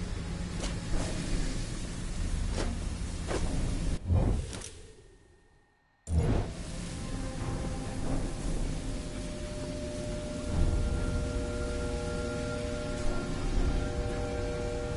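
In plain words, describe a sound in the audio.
Footsteps clank on a metal grating.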